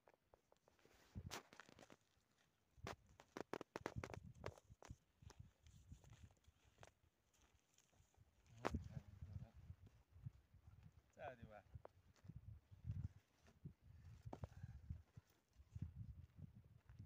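Footsteps crunch on stony ground nearby.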